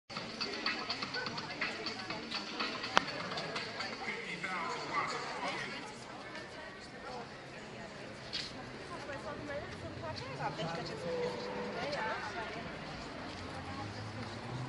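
Voices of several people chatter nearby outdoors.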